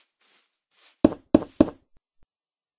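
Stone blocks thud into place in a video game.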